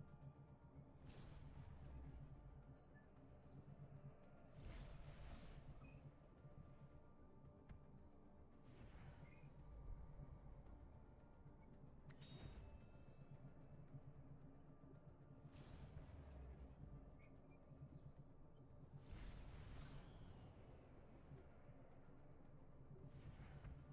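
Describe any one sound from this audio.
A sweeping whoosh sounds every few seconds.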